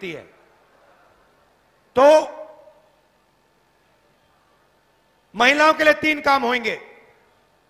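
A man speaks forcefully into a microphone through loudspeakers, with long pauses.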